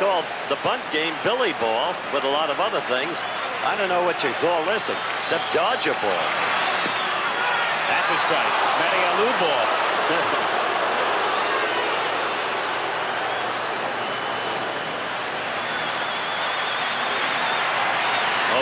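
A large stadium crowd cheers and roars loudly.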